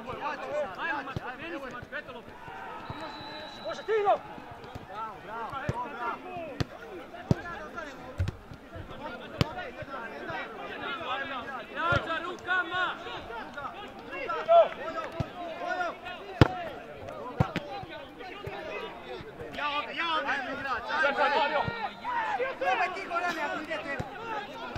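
Players shout and call out to each other across an open field.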